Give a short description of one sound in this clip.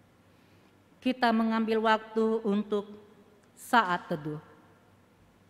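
A young woman sings slowly into a microphone.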